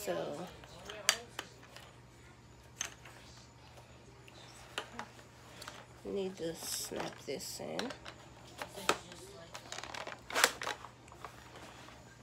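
Plastic mop parts click and snap together.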